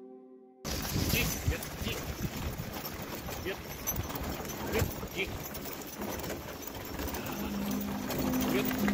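Wheels roll and crunch over gravel.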